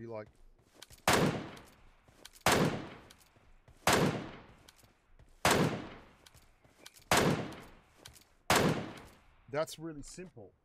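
Single rifle shots ring out at slow, even intervals, each with a long echoing tail.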